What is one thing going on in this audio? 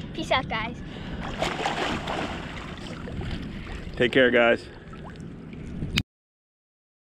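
Water splashes as a child swims nearby.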